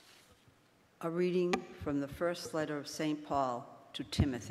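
An elderly woman reads aloud through a microphone in an echoing room.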